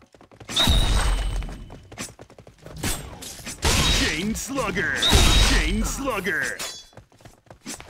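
A deep booming game effect sounds as a foe falls.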